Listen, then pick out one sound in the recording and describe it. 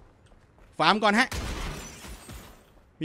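A wooden crate smashes apart with a crash.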